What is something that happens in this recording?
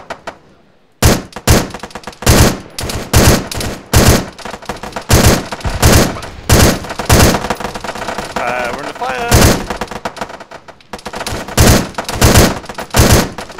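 Gunshots crack in rapid, uneven bursts.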